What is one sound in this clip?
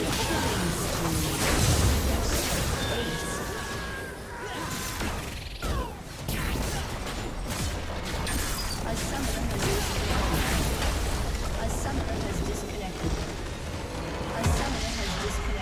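Game battle effects crash and zap in quick bursts.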